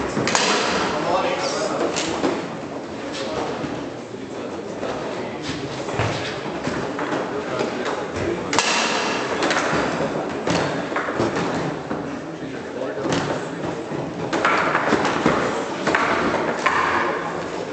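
Foosball rods clack and a ball knocks sharply against a table.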